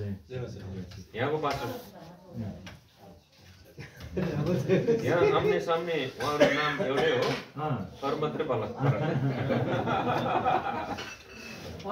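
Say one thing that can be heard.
Men laugh together nearby.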